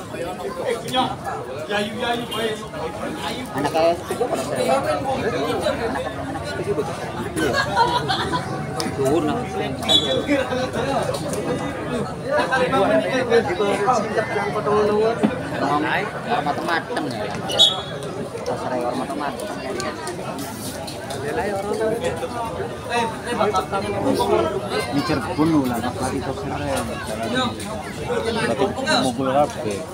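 A crowd of young women chatters and calls out nearby, outdoors.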